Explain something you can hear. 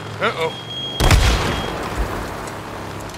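Debris crashes loudly under a motorcycle's wheels.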